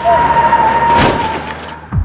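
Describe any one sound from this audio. A bicycle crashes onto a road with a loud clatter.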